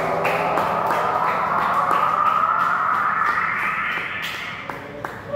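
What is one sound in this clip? An electric guitar drones through an amplifier in a rising, swelling wash of effects.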